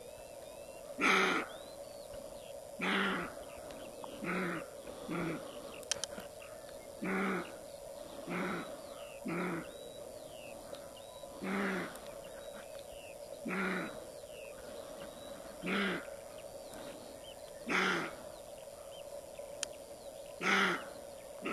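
A roe deer barks loudly in short, hoarse bursts at a steady pace, outdoors.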